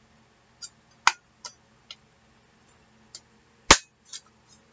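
A paper punch snaps shut with sharp clicks.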